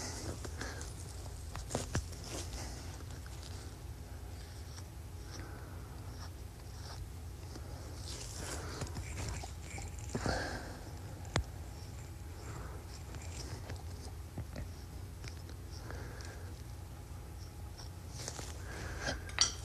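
A knife slices softly through an animal hide.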